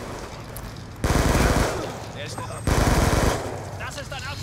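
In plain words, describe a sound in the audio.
A rifle fires two rapid bursts of gunshots.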